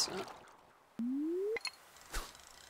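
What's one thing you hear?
A video game plays a rising electronic tone.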